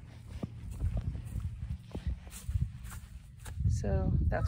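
Footsteps crunch on grass and dry ground outdoors.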